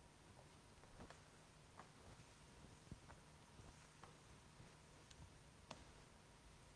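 Footsteps echo in a large room.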